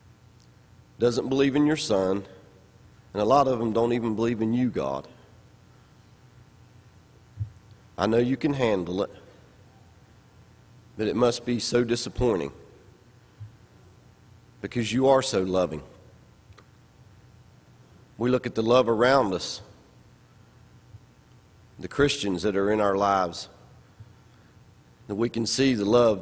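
A man speaks slowly and deliberately into a microphone, pausing between phrases.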